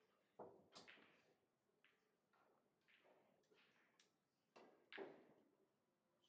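Pool balls click together as they are racked.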